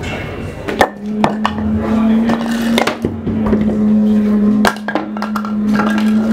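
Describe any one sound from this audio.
Firewood logs knock and clatter as a man handles them.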